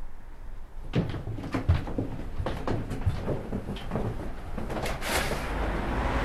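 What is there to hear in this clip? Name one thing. Footsteps tread along a hallway.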